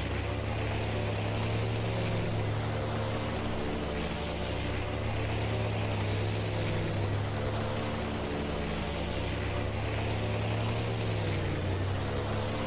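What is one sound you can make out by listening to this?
A boat's engine drones loudly and steadily.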